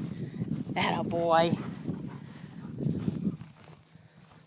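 A dog runs through dry grass close by.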